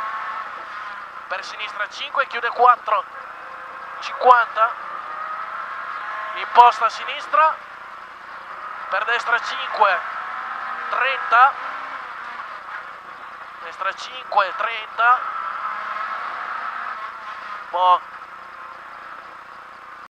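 A Renault Clio rally car engine revs high inside the car.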